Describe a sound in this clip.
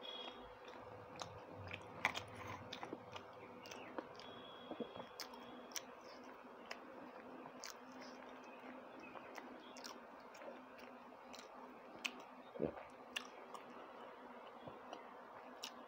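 Fingers squish and tear food on a plate.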